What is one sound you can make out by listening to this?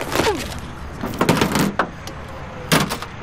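Small items rattle and rustle as a hand rummages through a bag.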